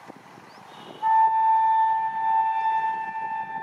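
A train horn blares loudly and steadily.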